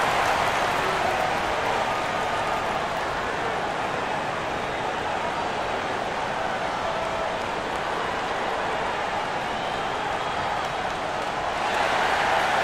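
A large crowd murmurs and cheers steadily in a big arena.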